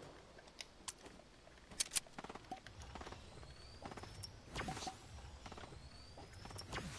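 Footsteps clatter on wooden planks in a video game.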